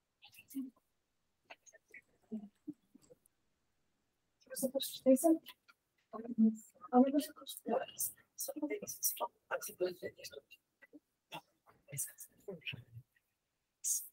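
Paper rustles in a woman's hands.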